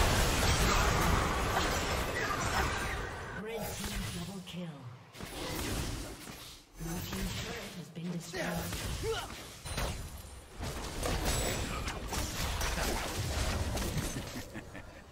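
Magic blasts and weapon strikes clash in a rapid, noisy fight.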